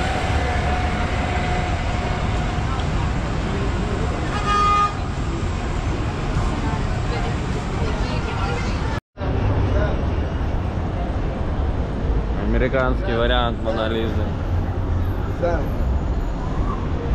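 Busy city street traffic rumbles steadily.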